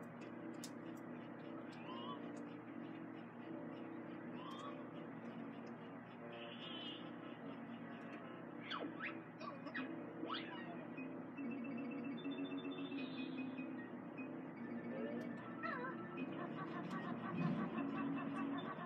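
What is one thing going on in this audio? Video game music plays from a television speaker.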